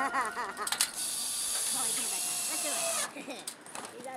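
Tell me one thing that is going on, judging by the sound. A cordless drill whirs as it drives a screw into a metal roof.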